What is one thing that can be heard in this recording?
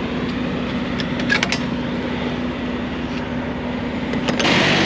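A metal door latch clanks as a gloved hand grabs it.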